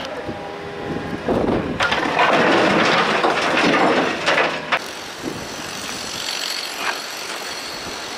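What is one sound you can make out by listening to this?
An excavator engine rumbles.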